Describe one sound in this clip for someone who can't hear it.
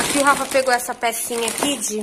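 Plastic packaging rustles and crinkles as it is handled.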